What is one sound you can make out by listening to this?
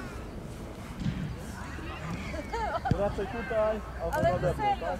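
Boys laugh and chatter outdoors.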